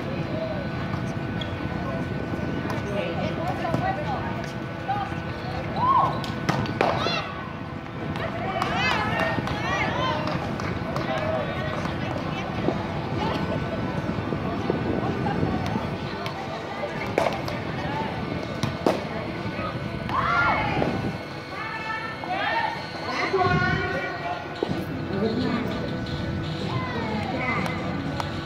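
Young women shout and call out to each other across an outdoor court.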